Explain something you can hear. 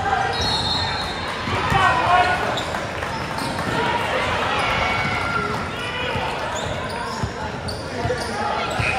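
A crowd of spectators talks and cheers in a large echoing hall.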